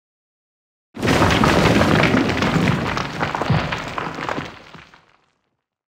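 Stone crumbles and crackles with a deep rumble, then slowly fades.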